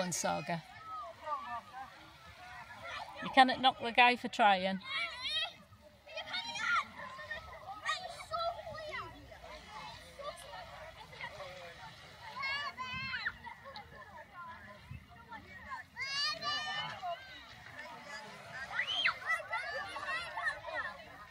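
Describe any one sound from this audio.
Children shout and shriek playfully at a distance, outdoors.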